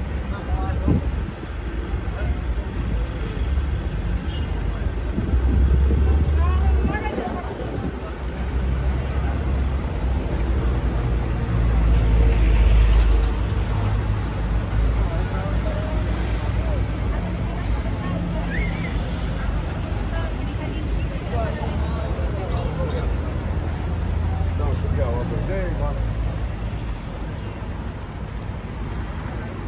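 Men and women chatter nearby as they walk past.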